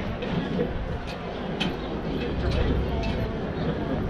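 A wheeled cart rattles along a brick pavement.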